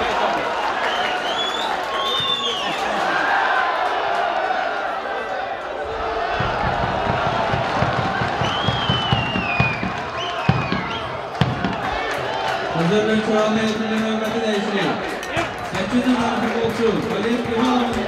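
A stadium crowd murmurs and cheers throughout.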